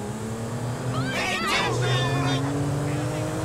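Car tyres squeal briefly on pavement.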